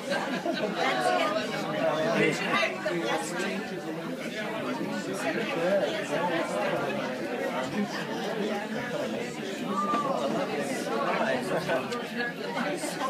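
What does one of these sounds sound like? An elderly man talks loudly nearby.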